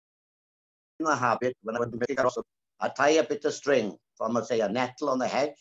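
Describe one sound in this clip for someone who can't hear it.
An elderly woman speaks with animation over an online call.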